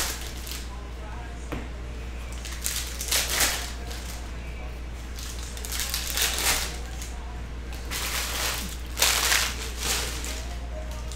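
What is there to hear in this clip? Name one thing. Plastic card sleeves and packs rustle and crinkle as they are handled.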